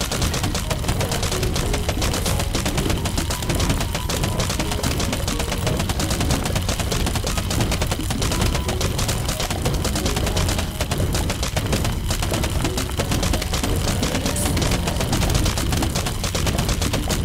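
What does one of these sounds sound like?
Rapid cartoon shots pop and thud without pause.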